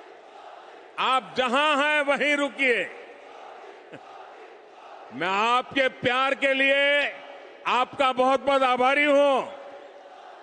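An elderly man speaks forcefully into a microphone, his voice booming through loudspeakers outdoors.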